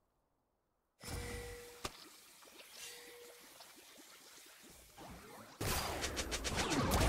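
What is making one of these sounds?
Magic spells whoosh and strike in a fantasy battle game.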